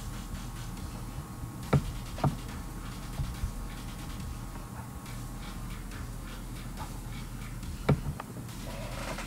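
A young man speaks quietly into a nearby microphone.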